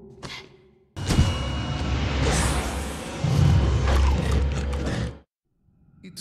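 A monster growls and roars loudly.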